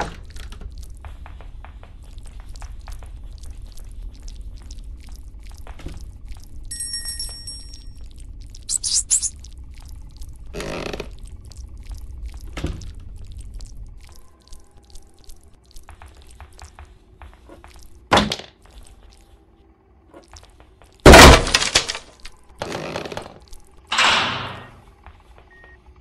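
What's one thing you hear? Footsteps tap steadily across wooden floors and stairs.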